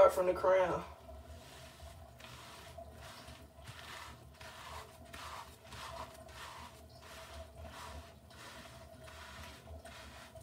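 Fingers rub and squish through lathered hair in a rhythmic scrubbing.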